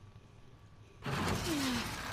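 A backpack scrapes and rustles against a wall.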